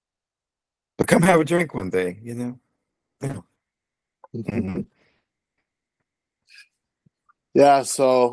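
A man speaks with animation over an online call, in bursts with pauses.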